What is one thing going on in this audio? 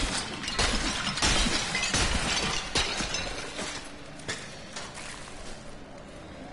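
Loud clashing and blasting sounds of a fantasy battle burst out in quick succession.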